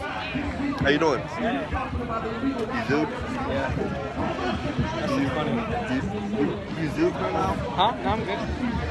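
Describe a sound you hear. Several young men and women chatter and call out around the speaker.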